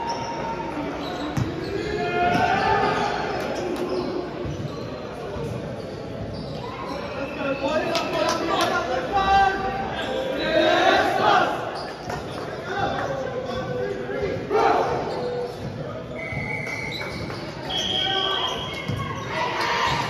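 Players call out and shout to each other in a large echoing hall.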